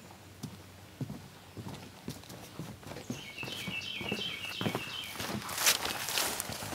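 Footsteps thud on a wooden boardwalk.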